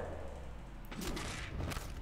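A heavy body blow lands with a thud.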